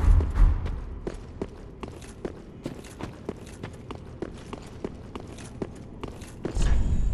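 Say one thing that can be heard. Armoured footsteps clank on stone at a steady run.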